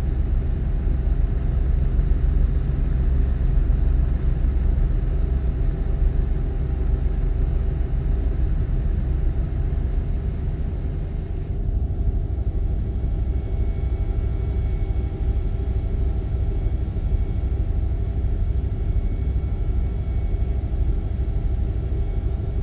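A truck's diesel engine hums steadily at speed.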